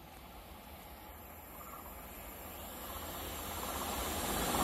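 A distant train approaches with a rumble that slowly grows louder.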